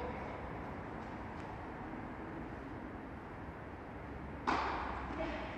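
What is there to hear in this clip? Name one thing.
A tennis ball is struck by rackets in a large echoing hall.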